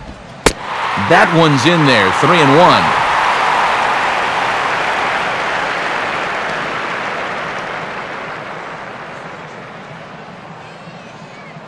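A crowd cheers and whistles loudly, then slowly fades.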